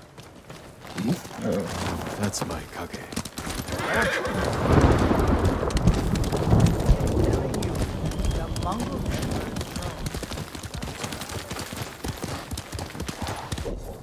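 A horse gallops with pounding hooves.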